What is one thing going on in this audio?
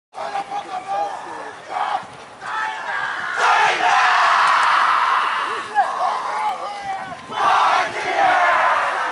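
A group of young men chants and shouts together in a huddle outdoors.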